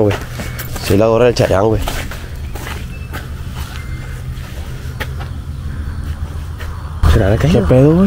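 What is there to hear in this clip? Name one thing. A man speaks nearby with animation.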